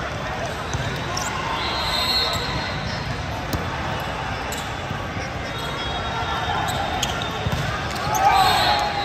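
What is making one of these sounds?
Sneakers squeak on a hard court floor.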